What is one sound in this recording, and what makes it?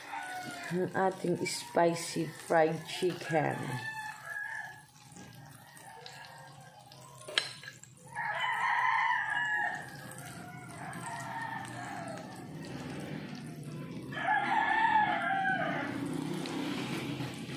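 Oil sizzles as food fries in a pan.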